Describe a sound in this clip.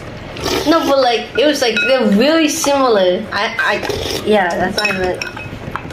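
A young woman slurps noodles loudly.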